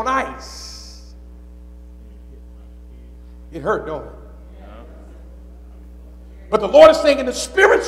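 A man preaches into a microphone in a large echoing hall, speaking with emphasis and pausing between phrases.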